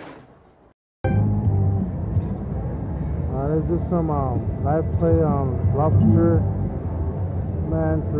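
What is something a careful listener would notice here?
A slot machine plays chiming, warbling electronic tones.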